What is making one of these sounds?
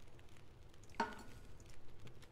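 A metal cooking pot clanks down onto a stove.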